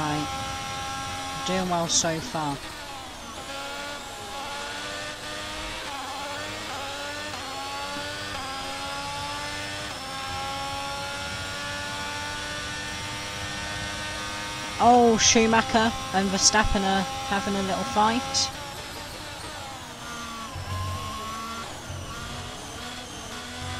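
A racing car engine whines loudly, rising in pitch and dropping sharply with each gear change.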